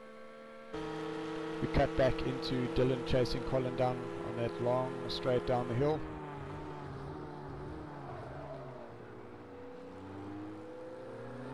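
A race car engine drones steadily and changes pitch as the car accelerates and shifts gears.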